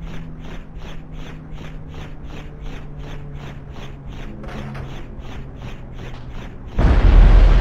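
A car engine hums steadily as it drives.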